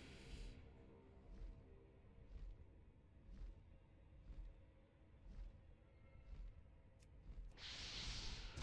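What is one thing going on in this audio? A large winged drake's wings beat in slow, regular flaps.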